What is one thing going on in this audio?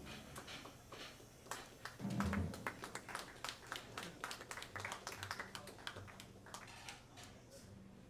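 A drummer taps cymbals and drums lightly.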